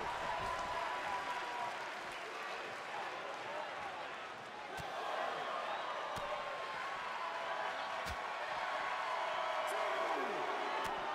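A large crowd cheers and roars steadily.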